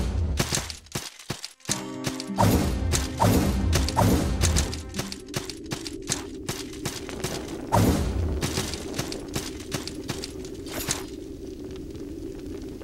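Quick footsteps patter on stone.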